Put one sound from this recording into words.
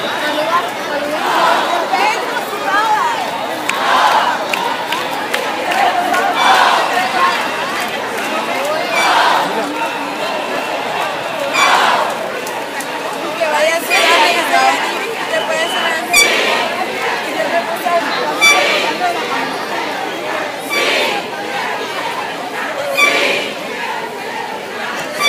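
A large crowd of marchers chants and cheers outdoors in rhythmic bursts.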